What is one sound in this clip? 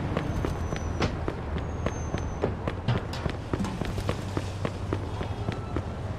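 Footsteps patter quickly on pavement.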